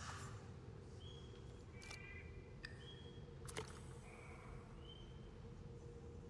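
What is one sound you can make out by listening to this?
Soft electronic menu blips sound now and then.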